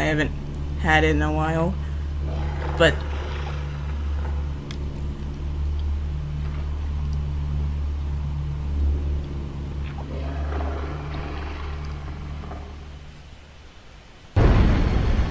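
A monster growls low and menacingly.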